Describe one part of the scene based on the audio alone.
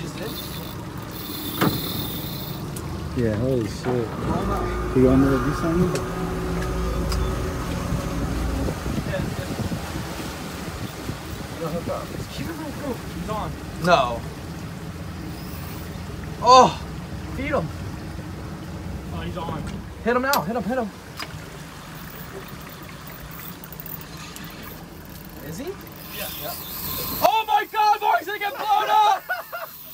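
Water washes against a boat's hull outdoors in wind.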